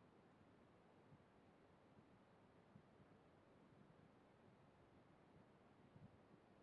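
A man speaks quietly and calmly into a microphone.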